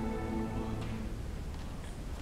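A string orchestra plays a sustained chord that stops.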